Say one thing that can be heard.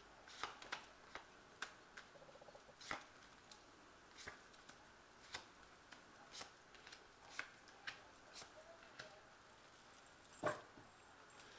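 Playing cards tap softly as they are laid down on a cloth.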